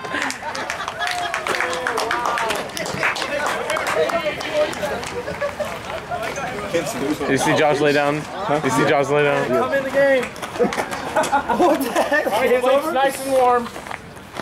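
Young men cheer and shout excitedly outdoors.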